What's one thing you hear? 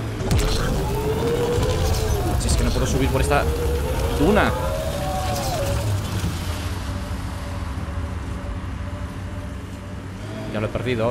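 Wheels crunch and skid over sand.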